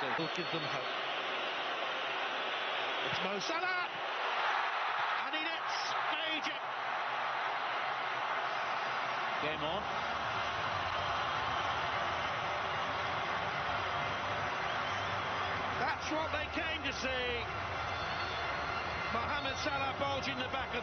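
A large stadium crowd roars loudly.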